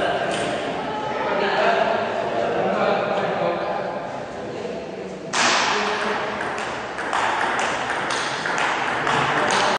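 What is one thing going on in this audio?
A table tennis ball clicks back and forth on paddles and the table in an echoing hall.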